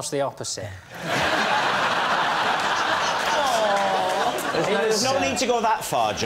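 A crowd of people laughs loudly.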